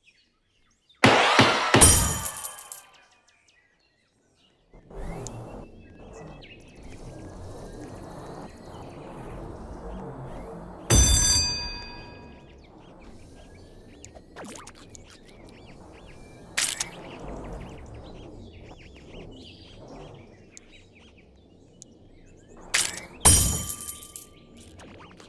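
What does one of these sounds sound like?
Game chimes and jingles ring out in short bursts.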